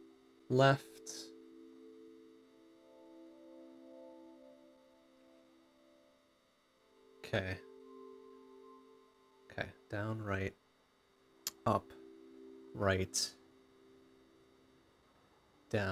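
A man speaks with animation into a nearby microphone, in short bursts.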